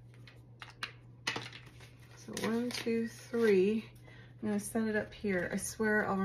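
Paper banknotes rustle as they are counted.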